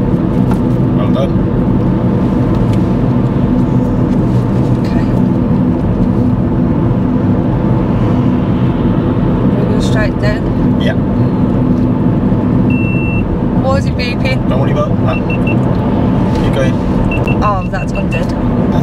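A car engine hums steadily with road noise from the tyres.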